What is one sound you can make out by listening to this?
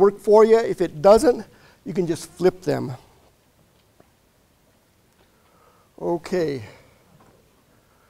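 A man lectures through a microphone in a large room, speaking in short bursts.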